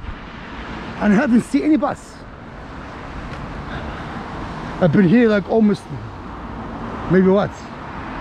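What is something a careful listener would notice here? A car drives past on a wet road nearby.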